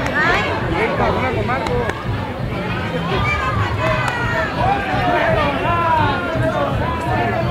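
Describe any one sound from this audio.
A crowd of men and women shouts and chants loudly nearby, in a large echoing hall.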